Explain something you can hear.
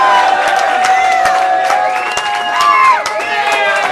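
A person claps their hands.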